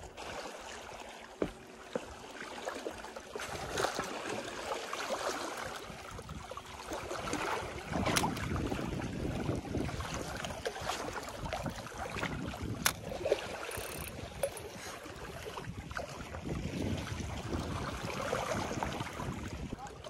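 Small waves lap and splash against rocks nearby.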